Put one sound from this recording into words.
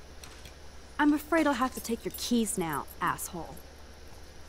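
A young woman speaks calmly and firmly.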